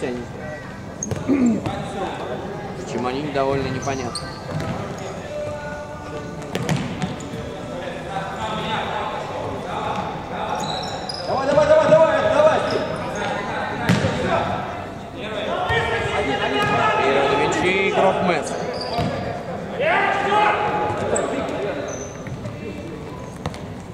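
A ball is kicked with sharp thuds in a large echoing hall.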